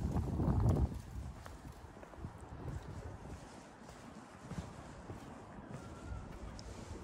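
Footsteps tap slowly on a stone pavement outdoors.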